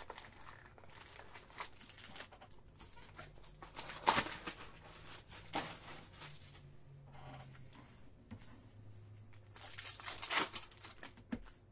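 Plastic wrappers crinkle and rustle as card packs are handled.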